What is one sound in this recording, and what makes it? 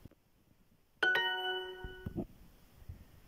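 A phone app plays a bright success chime.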